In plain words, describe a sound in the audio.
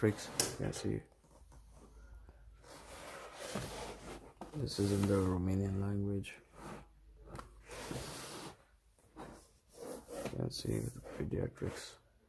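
Books slide and rub against each other on a shelf.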